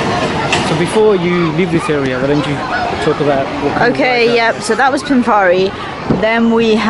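Children chatter nearby outdoors.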